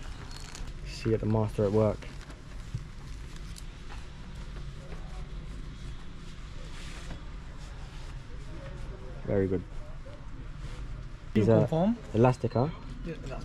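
An older man answers in a calm voice.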